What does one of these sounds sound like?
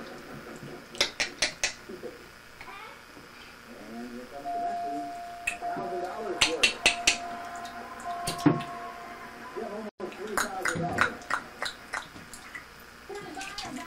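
Water splashes in a bathtub.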